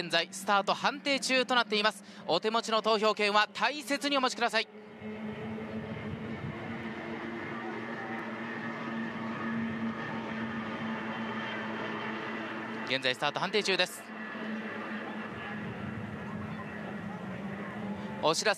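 Racing boat engines roar steadily across the water.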